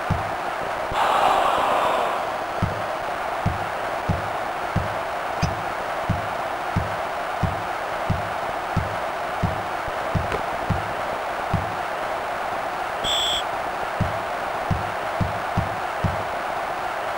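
A basketball bounces steadily on a hardwood floor.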